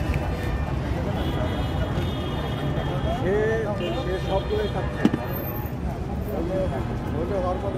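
Street traffic rumbles steadily in the background.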